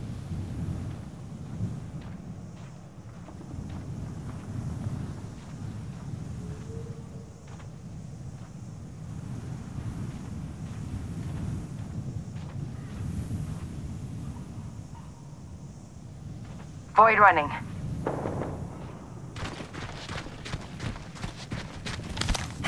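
Footsteps crunch over dry ground and grass.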